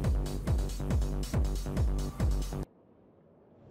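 Upbeat music with a strong beat plays from a car radio, then cuts off abruptly.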